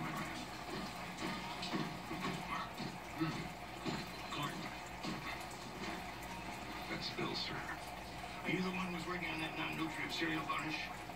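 A television plays in the room.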